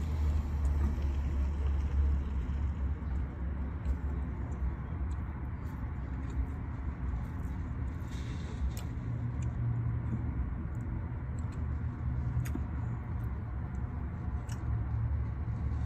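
A young woman chews food close by.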